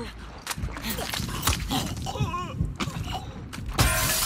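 A man chokes and groans in a struggle.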